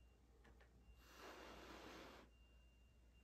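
A woman blows a long, soft breath of air close by.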